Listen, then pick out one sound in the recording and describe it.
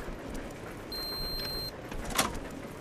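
An electronic keypad beeps once.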